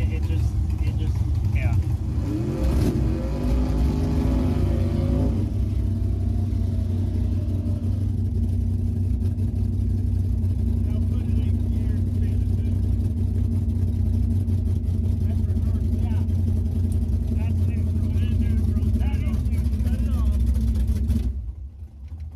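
A race car engine idles with a loud, deep, rough rumble.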